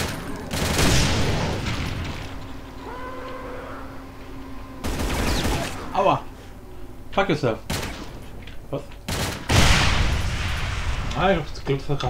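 Loud gunshots and explosions boom in bursts.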